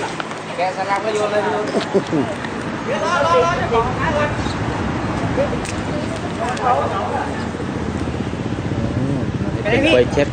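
A man speaks nearby in a firm, explaining voice.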